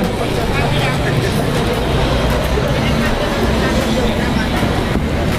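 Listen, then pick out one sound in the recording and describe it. A city bus engine hums nearby.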